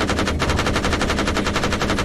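A large explosion roars in the distance.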